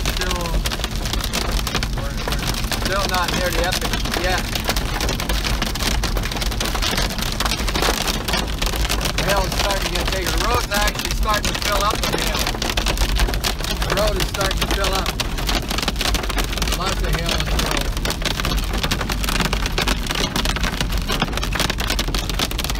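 Rain drums steadily on a car's windshield and roof.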